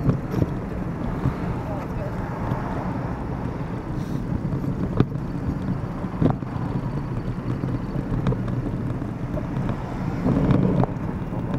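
Traffic drives past on a nearby road.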